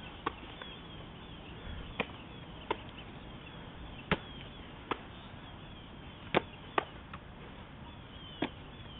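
A ball is kicked with sharp thuds, again and again.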